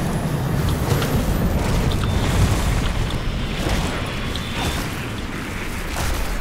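A large fire roars and crackles steadily.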